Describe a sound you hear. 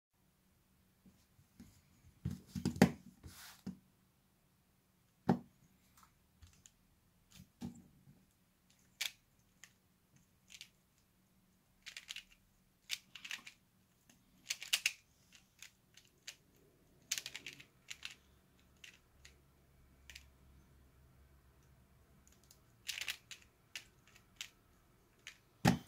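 A plastic pyraminx puzzle clicks and clacks as its layers are turned.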